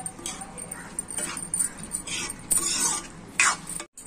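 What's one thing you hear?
A spatula scrapes a metal pan.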